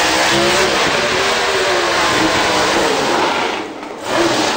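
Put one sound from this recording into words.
Tyres screech and spin during a burnout.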